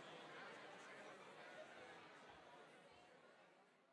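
An organ plays softly.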